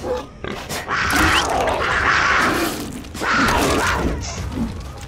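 A wooden club thuds heavily into an animal.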